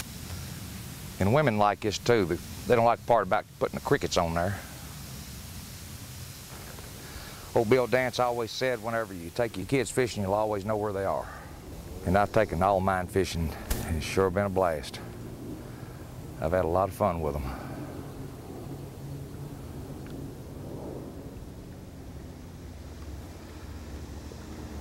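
Small waves lap gently against a rocky shore.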